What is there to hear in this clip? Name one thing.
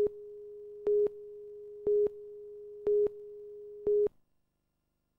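A short beep sounds once each second.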